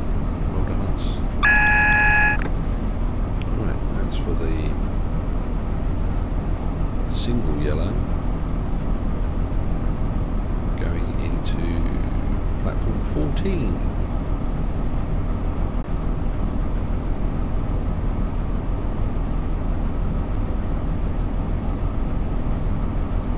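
A train rolls along the rails with a low, steady rumble.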